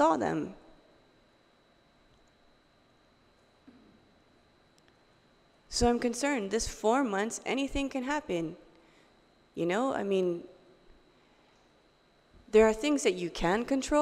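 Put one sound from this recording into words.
A young woman speaks into a microphone, calmly and haltingly, with pauses.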